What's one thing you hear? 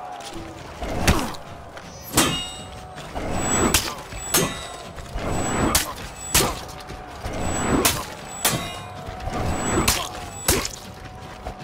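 Metal weapons clash and clang sharply, again and again.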